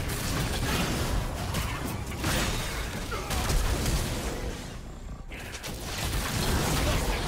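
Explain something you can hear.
Magic blasts whoosh and crackle during a fast game battle.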